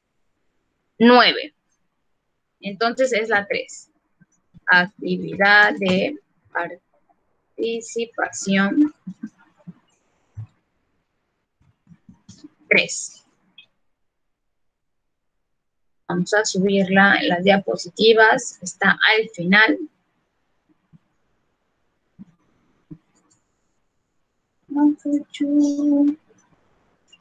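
A young woman speaks calmly over an online call, in bursts with pauses.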